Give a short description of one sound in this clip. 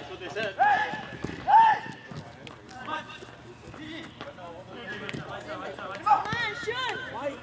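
Young men shout loudly to each other outdoors.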